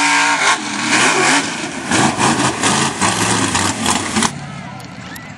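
A truck engine roars loudly as the truck churns through mud.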